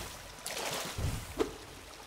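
A magical blast bursts with a whooshing roar.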